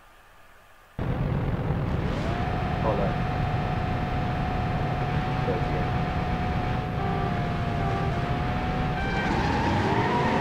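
Car engines rumble and idle loudly.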